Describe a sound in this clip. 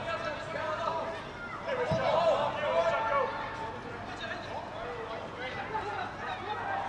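Male football players shout to each other across an open-air pitch.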